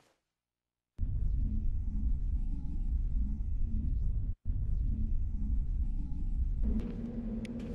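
A deep engine hum drones steadily.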